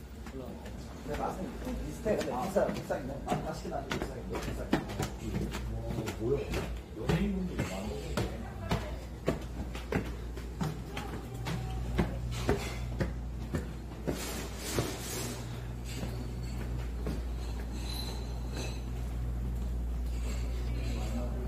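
Footsteps thud on stairs and a hard floor.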